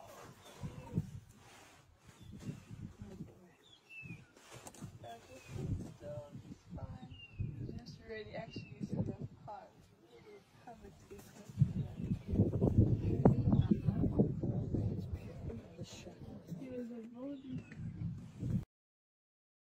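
A lion pads softly across grass close by.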